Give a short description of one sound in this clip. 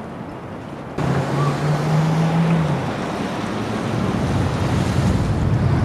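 Wind rushes outdoors.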